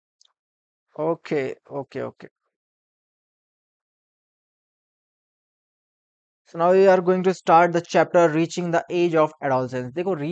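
A young man speaks calmly and close to a microphone, in short bursts with pauses.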